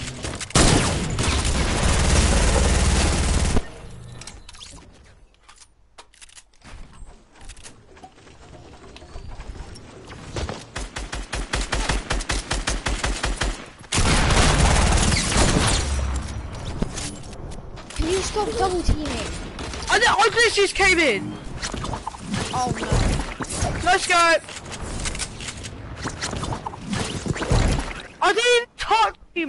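Video game sound effects play.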